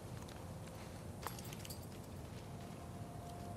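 A strip of mesh rustles as a hand lifts it.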